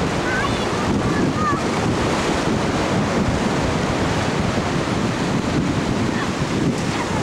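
Shallow seawater washes and swirls around a girl sitting in it.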